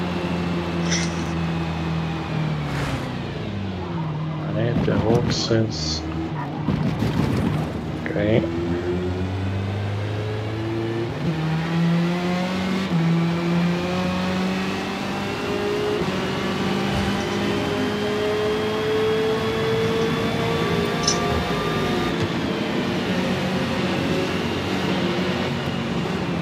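A race car engine roars, dropping in pitch through braking and rising as it speeds up through the gears.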